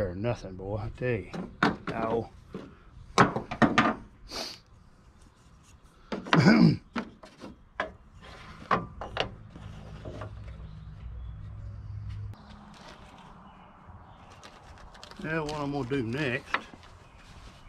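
An older man talks calmly nearby.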